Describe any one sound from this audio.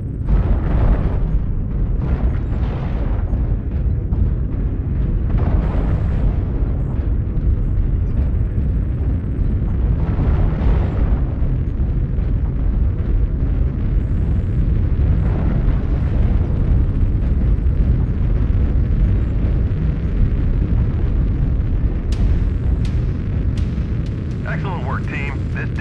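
Heavy metal footsteps thud in a slow rhythm.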